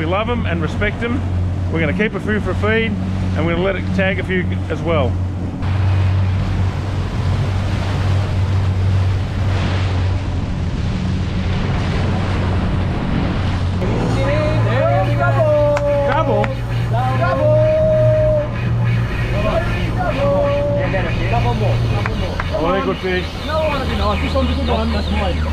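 Water rushes and splashes behind a moving boat.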